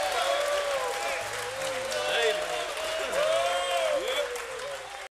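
People in an audience cheer and whistle with rising and falling pitch.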